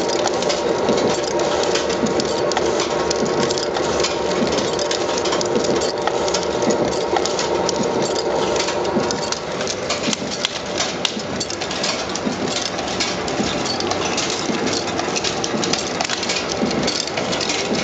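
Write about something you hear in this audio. Metal parts of a machine clatter and tick rapidly.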